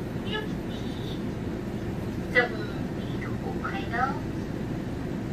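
A young woman speaks briefly and softly.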